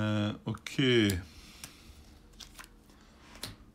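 A card slides and taps on a paper board.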